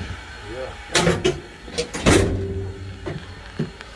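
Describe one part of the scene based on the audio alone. A door latch clicks and a wooden door rattles open.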